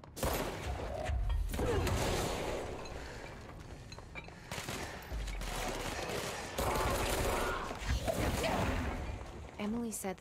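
Loud blasts and impacts burst out in a fight.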